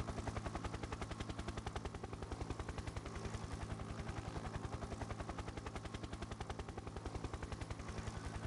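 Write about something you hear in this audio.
A helicopter's rotor chops steadily.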